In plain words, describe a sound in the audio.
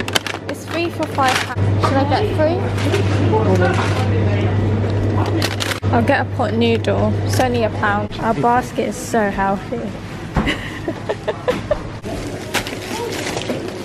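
Plastic packets rustle as they are handled.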